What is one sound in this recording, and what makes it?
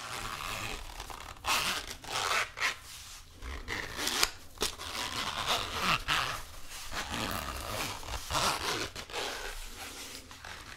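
A sponge is squeezed and rubbed with soft crackling and scratching close to a microphone.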